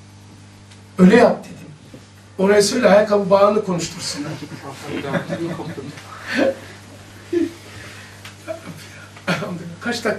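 An elderly man speaks into a microphone with animation.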